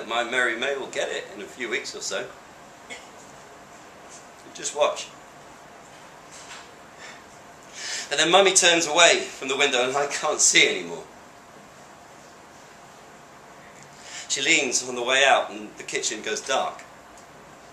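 A young man speaks close by, calmly, in short bursts with pauses.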